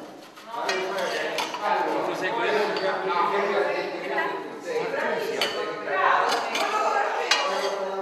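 A serving spoon scrapes in a metal pan.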